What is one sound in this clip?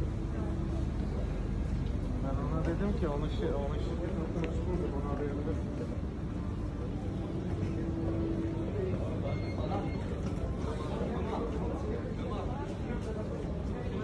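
A crowd of people chatters at a distance in a large echoing hall.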